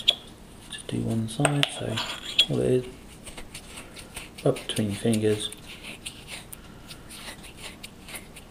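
Fingers rub a wet coin.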